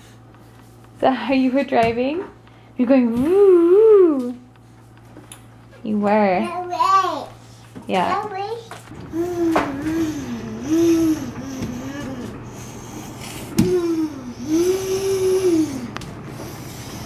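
A toddler babbles and squeals in a sing-song voice close by.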